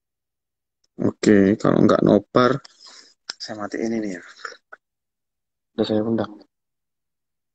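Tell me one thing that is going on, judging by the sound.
A young man speaks briefly and casually, close to the microphone.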